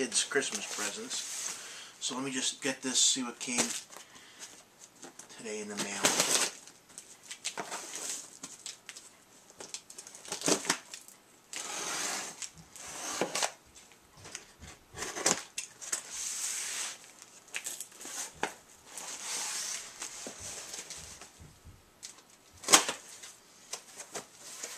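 A cardboard box rustles and scrapes as it is handled.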